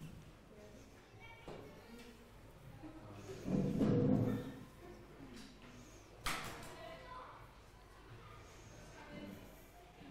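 Young people talk quietly among themselves in a room.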